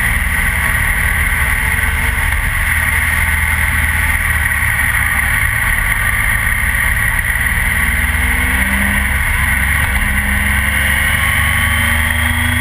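A motorcycle engine hums steadily, rising and falling in pitch.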